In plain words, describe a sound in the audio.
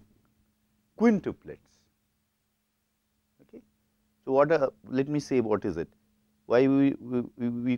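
A man speaks calmly and clearly into a close microphone, in bursts with pauses.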